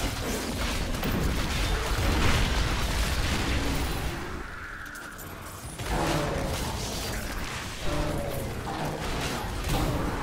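A man talks into a nearby microphone with animation.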